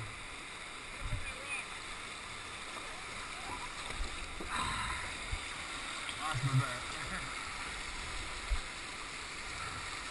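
A paddle splashes into the water.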